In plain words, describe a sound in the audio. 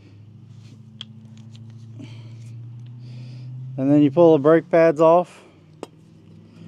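Metal brake pads clink together as they are handled.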